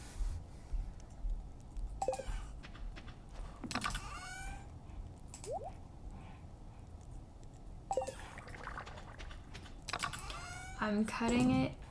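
Short menu sounds click as a game inventory opens and closes.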